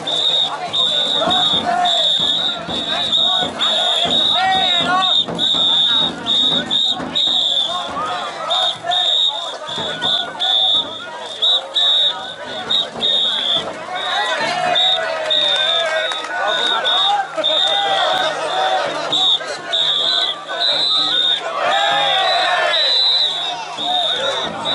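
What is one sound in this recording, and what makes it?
A crowd of men chant and shout loudly outdoors.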